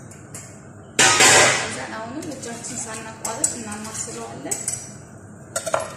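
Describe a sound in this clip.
A whisk clinks and scrapes quickly against a metal pot.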